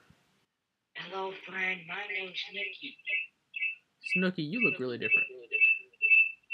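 A man talks over an online call.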